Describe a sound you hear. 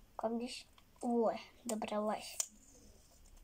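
A young girl speaks briefly and close by.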